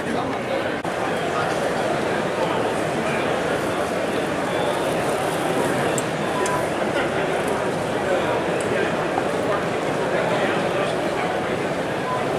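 A crowd of men and women chatter steadily in a large echoing hall.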